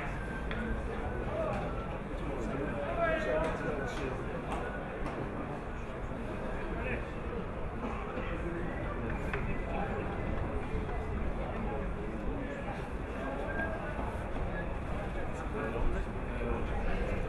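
Men call out and talk at a distance.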